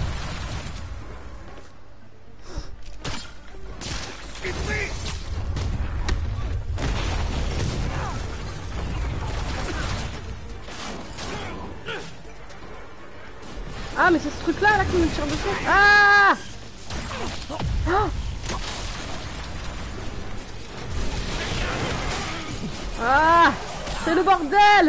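Punches and blasts thud and crack in a fight.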